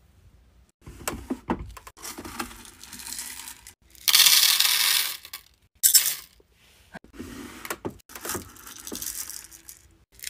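Wax beads rattle and clatter as a bowl scoops through them.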